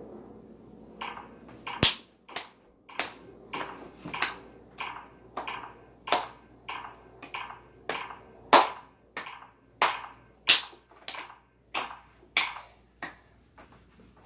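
A young man snaps his fingers in a steady rhythm.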